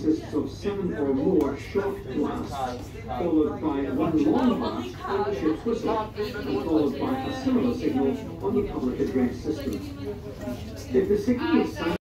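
A man and a woman talk nearby in an echoing room.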